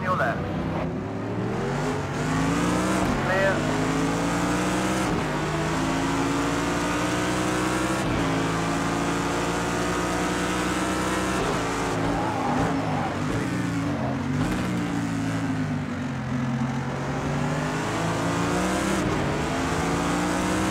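A racing car engine roars loudly, rising and falling in pitch as it shifts gears.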